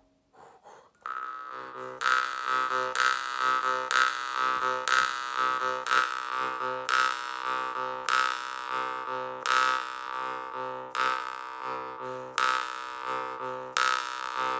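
A harmonica plays a lively, rhythmic tune with repeated breathy chords.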